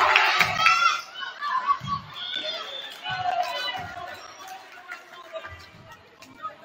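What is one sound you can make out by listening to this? A volleyball is struck with sharp thumps in an echoing gym.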